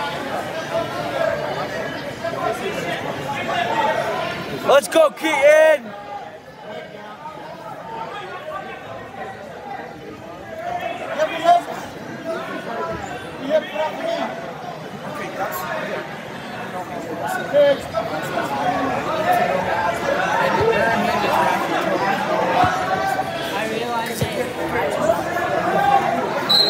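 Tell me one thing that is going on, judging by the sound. Wrestlers' bodies thud and scuff on a mat.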